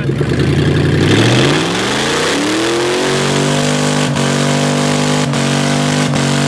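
A truck engine revs up loudly.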